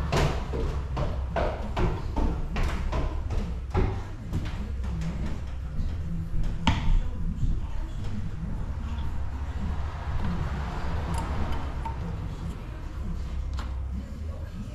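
Metal parts clink and click against each other.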